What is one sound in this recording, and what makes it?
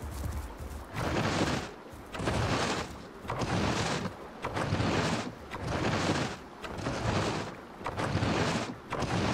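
A large animal tears and chews at a carcass with rhythmic wet crunches.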